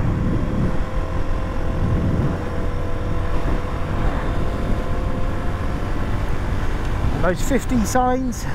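Wind rumbles loudly over the microphone.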